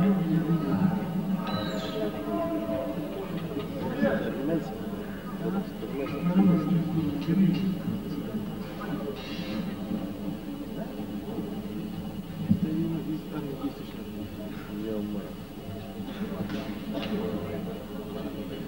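An electric guitar plays.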